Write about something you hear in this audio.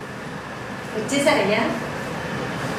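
A young woman speaks brightly nearby.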